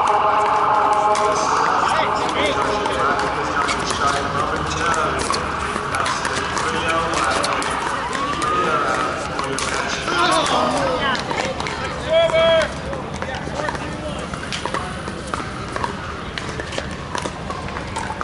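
Men and women call out and chatter across nearby courts outdoors.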